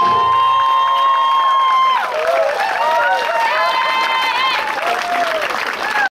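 A group of young men sing together in close harmony without instruments.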